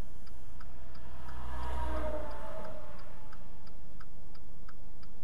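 A heavy truck rumbles past.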